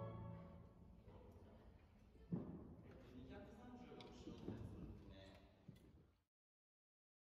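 Timpani are struck with mallets, booming and ringing in a reverberant hall.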